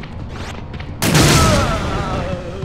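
A grenade launcher fires with a loud boom.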